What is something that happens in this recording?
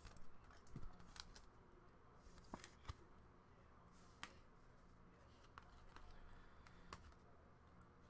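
Trading cards shuffle and click softly in hands.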